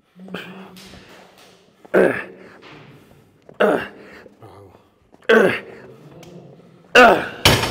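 A man grunts and exhales hard with effort.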